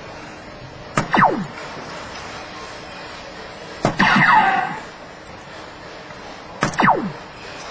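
A dart thuds into an electronic dartboard.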